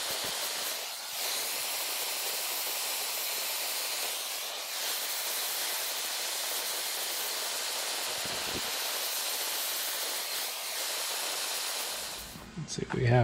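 A gas torch hisses and roars steadily.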